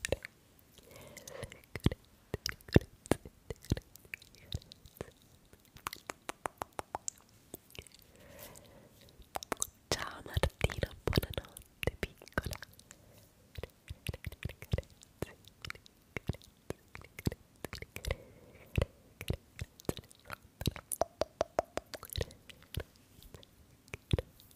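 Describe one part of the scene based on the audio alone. Fingernails tap and click close to a microphone.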